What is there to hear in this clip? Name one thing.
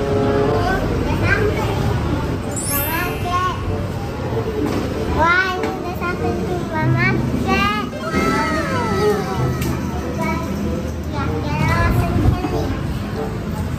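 Young girls talk and chatter in high voices nearby.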